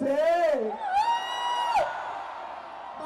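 A man sings a long held note into a microphone.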